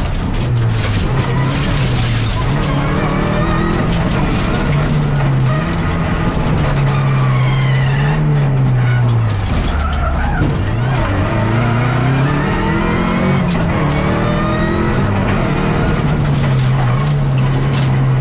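Tyres rumble and crunch on the road.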